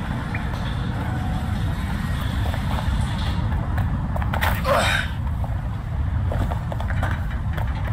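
Footsteps run quickly over concrete and rubble.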